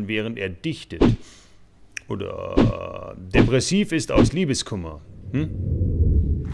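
A man speaks in a funny, animated cartoon voice.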